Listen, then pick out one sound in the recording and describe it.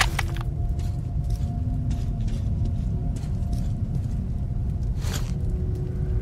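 Footsteps crunch slowly on gritty ground.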